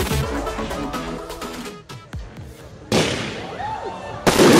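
Fireworks launch with crackling and hissing.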